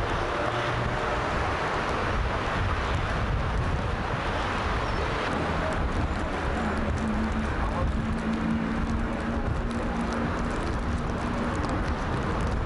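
A busy street crowd murmurs outdoors.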